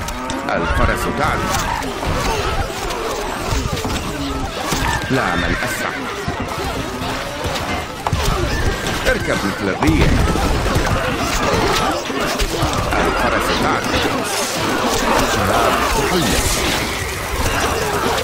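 Many armoured soldiers march together.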